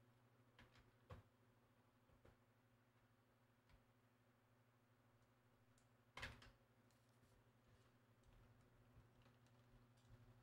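Buttons on a game controller click softly.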